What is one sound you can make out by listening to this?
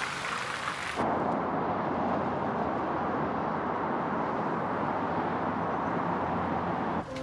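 Traffic hums steadily on a busy road.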